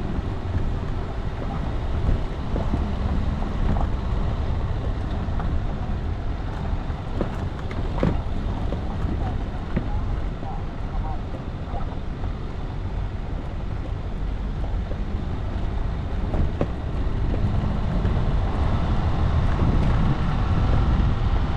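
A vehicle engine rumbles steadily at low speed.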